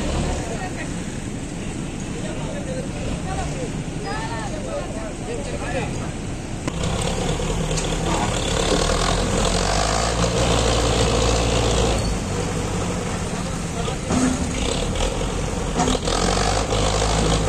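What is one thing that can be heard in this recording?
A heavy road roller engine rumbles steadily close by.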